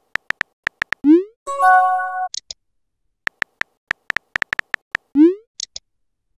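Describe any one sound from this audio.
A message sends with a short rising whoosh.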